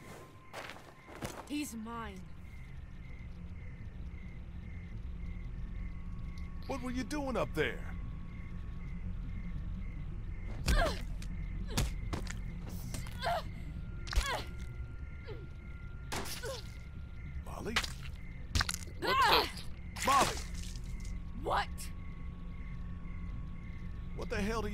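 A young woman speaks sharply.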